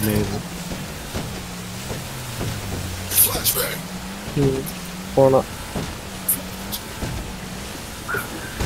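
Water splashes and sprays against a speeding boat's hull.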